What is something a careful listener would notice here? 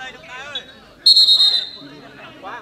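A referee's whistle blows one sharp blast.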